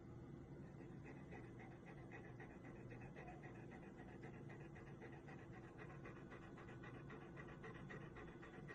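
A dog pants rapidly close by.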